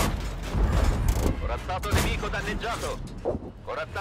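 A shell explodes with a heavy blast.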